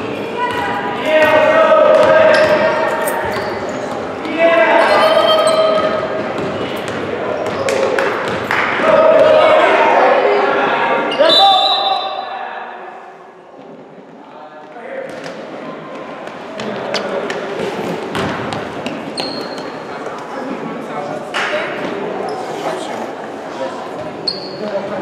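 A basketball bounces on a wooden gym floor.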